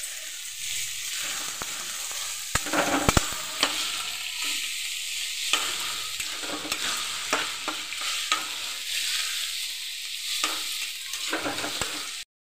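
Onions sizzle in hot oil.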